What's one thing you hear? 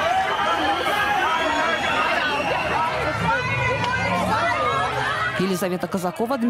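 A crowd of men and women shout and clamour loudly close by.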